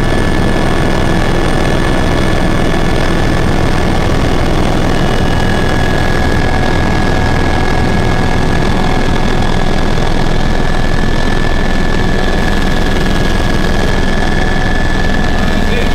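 An aircraft engine drones loudly and steadily inside a cabin.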